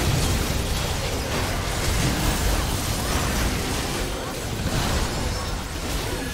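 Game spell effects crackle and burst in a fast-paced battle.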